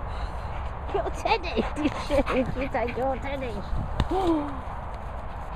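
A dog yelps and whines excitedly up close.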